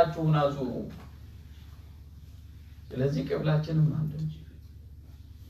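A man speaks calmly and close by, with pauses.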